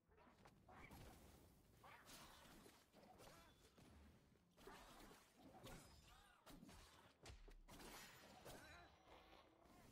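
A blade swishes and slashes in quick strikes.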